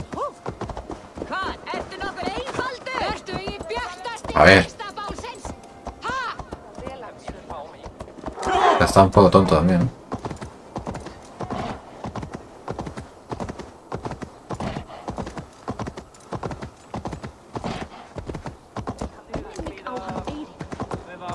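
Hooves clop steadily on stone.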